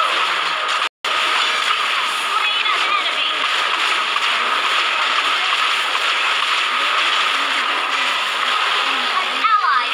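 Game spell effects whoosh and crackle during a fast battle.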